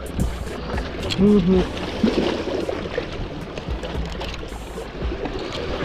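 Sea water splashes against rocks nearby.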